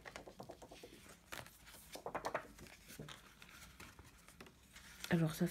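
Plastic sleeves rustle and crinkle as they are handled.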